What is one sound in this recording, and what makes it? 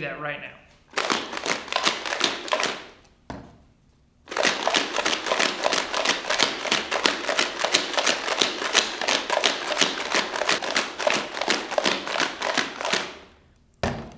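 Sand and water rattle as a plastic bottle is shaken hard.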